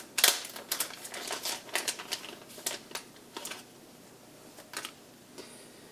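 Plastic bags crinkle and rustle close by.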